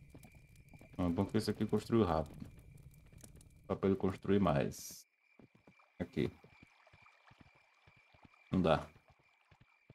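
A young man talks close to a microphone in short bursts.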